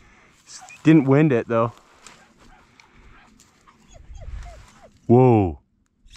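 A dog rustles through dry brush.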